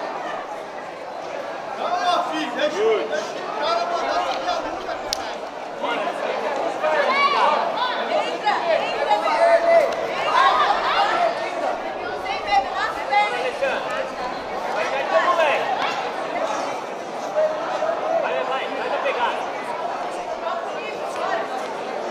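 A crowd of spectators chatters and calls out loudly throughout.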